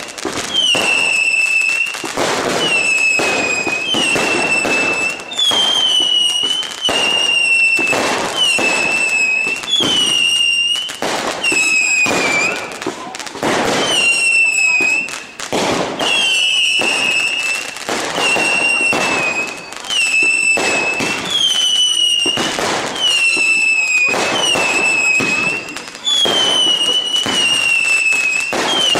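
Fireworks burst with loud booming bangs, one after another.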